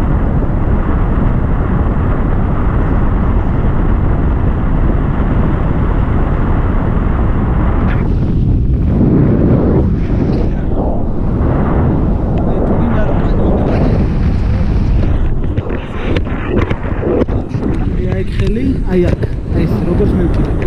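Strong wind roars steadily past a microphone.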